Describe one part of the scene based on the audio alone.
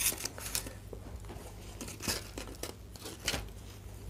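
Plastic packaging crinkles as it is lifted out.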